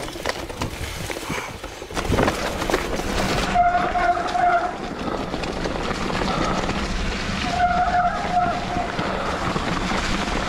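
Bicycle tyres roll and crunch over dry leaves and dirt.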